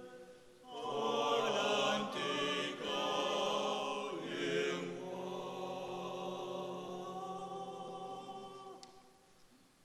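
A choir of men sings together in a reverberant hall.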